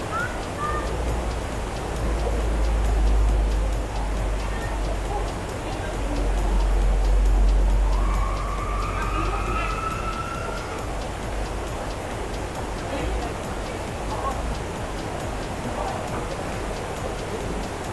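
A waterfall rushes and splashes steadily outdoors.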